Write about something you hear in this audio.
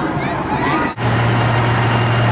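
A large tractor engine rumbles steadily.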